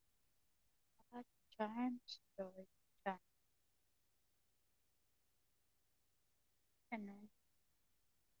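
A young woman speaks briefly into a close microphone, with pauses.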